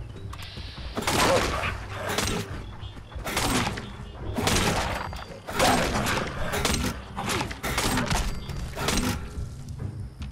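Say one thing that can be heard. Heavy blows land in loud, quick bursts.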